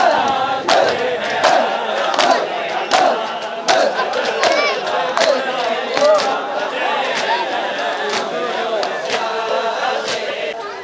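Many hands beat rhythmically on chests in loud, sharp slaps.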